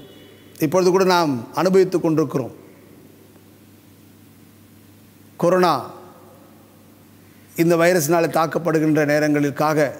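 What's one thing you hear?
A middle-aged man speaks slowly and solemnly through a microphone, with pauses.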